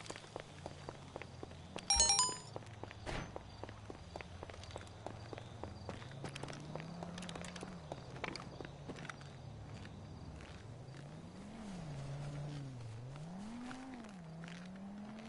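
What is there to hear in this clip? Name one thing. Footsteps patter steadily on hard ground.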